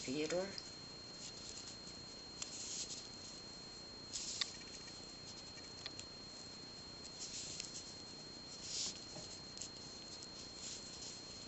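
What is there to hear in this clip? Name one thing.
Small beads click and rustle softly as fingers thread them on a wire.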